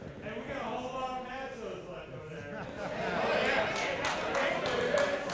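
A crowd of people murmurs and talks in a large room.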